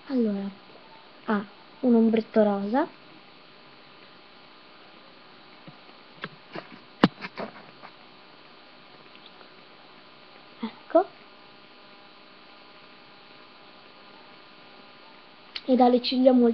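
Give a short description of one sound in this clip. A young girl speaks close to the microphone in short, lively bursts.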